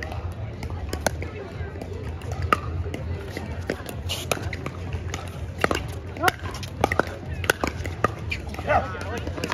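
Paddles strike a plastic ball with sharp pops in a rally outdoors.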